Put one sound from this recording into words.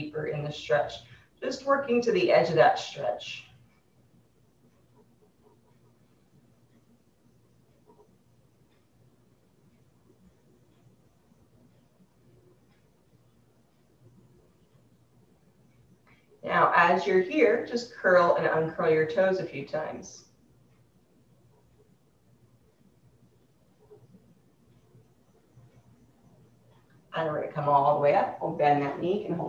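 A woman speaks calmly and clearly nearby, in bursts with long pauses.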